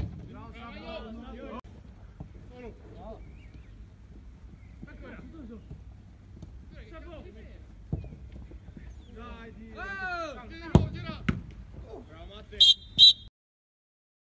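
Young men shout to each other outdoors across a field.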